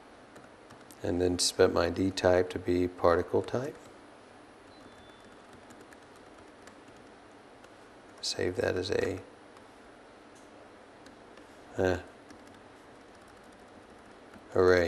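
A man speaks calmly into a microphone, in short phrases.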